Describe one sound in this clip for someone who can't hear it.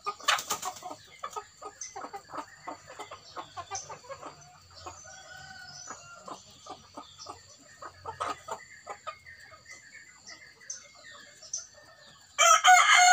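Chickens peck and scratch at dry earth with quick taps.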